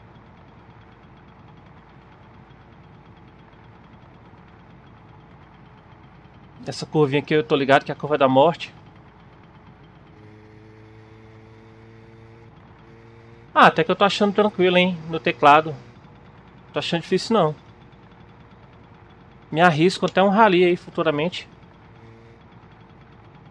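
A motorbike engine hums steadily.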